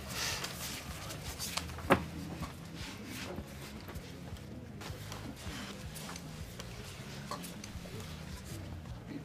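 Playing cards rustle and snap in someone's hands.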